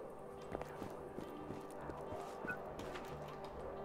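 Footsteps run across a hard surface.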